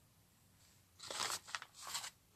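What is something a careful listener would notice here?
A plastic wrapper rustles.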